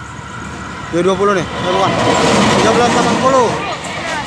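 A train rumbles and roars past close by.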